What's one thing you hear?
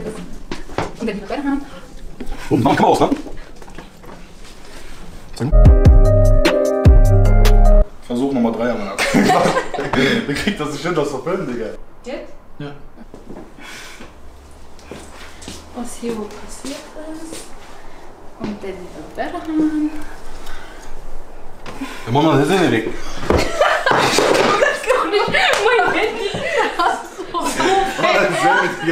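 A young woman laughs and talks excitedly.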